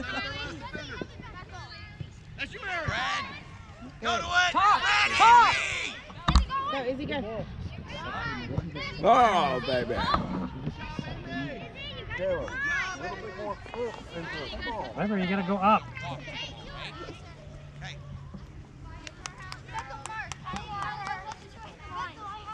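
Young girls shout and call out to each other across an open field outdoors.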